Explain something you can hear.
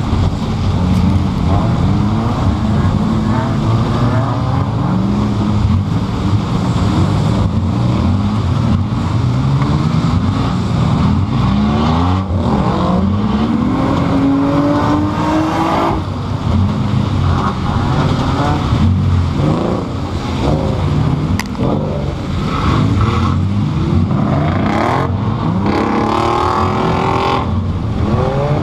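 Tyres skid and crunch over a dirt track.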